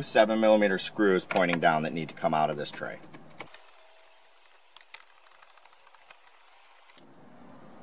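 Plastic trim clicks and creaks as it is pried loose.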